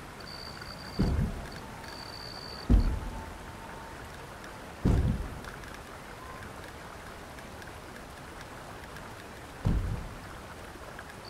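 Soft game menu sounds thump as options are selected.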